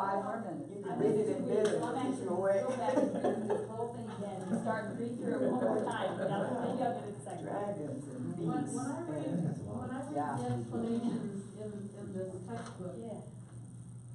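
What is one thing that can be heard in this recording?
An elderly man speaks calmly and casually, a little way off.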